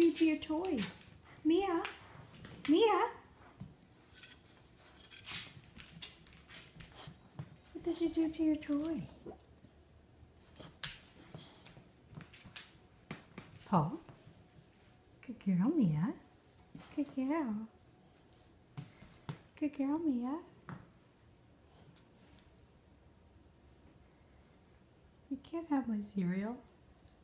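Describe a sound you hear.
A dog whines in short, rising and falling cries.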